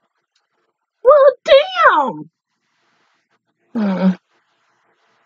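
A young woman speaks briefly and expressively close to a microphone.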